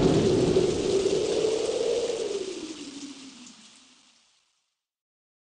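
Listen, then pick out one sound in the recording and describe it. Thunder rumbles low and slowly fades away.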